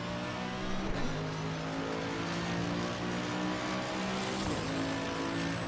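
Gear changes crack sharply between the engine's climbs.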